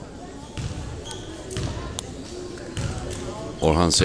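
A basketball bounces on a hard wooden floor in a large echoing hall.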